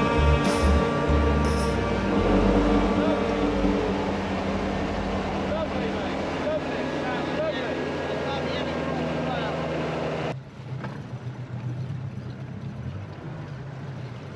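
Water splashes against the hull of a small boat.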